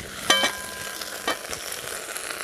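A metal pot clanks and rings briefly.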